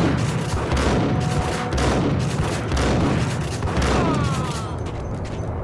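Shotgun blasts boom in quick succession.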